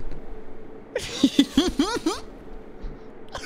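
A young man laughs into a headset microphone.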